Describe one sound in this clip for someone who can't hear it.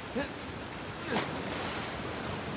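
Water splashes as a body plunges into it.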